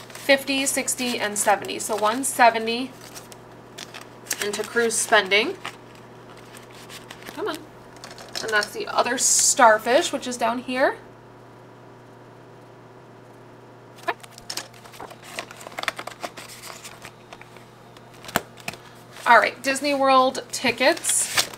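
Paper bills rustle as they are handled.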